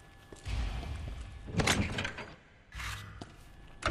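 A heavy metal lid creaks open.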